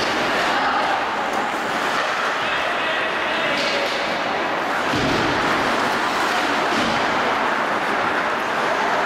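A hockey stick knocks against a puck.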